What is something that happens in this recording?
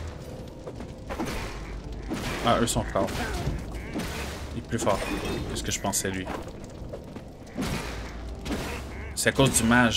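Game spell effects zap and whoosh.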